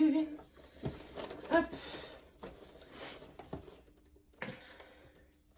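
Paper and ribbon rustle as a box is opened.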